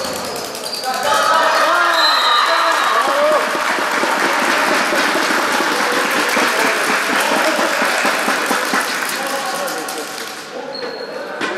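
Spectators cheer and clap.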